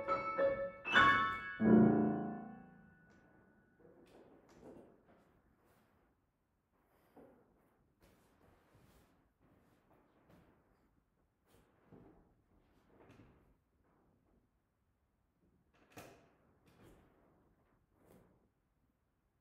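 A grand piano sounds loud, crashing chords, then soft scattered notes.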